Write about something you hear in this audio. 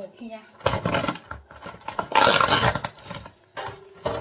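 A plastic food tray crinkles and rustles under hands.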